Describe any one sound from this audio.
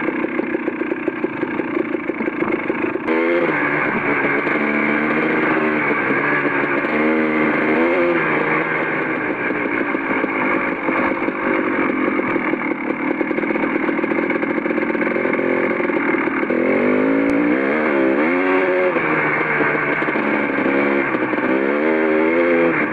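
An off-road engine hums and revs up and down close by.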